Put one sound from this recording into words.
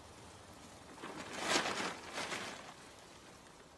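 A plastic tarp rustles and crinkles as it is handled.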